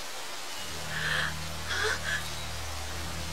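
A young woman gasps in alarm.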